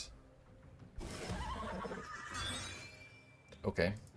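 Magical game sound effects whoosh and chime.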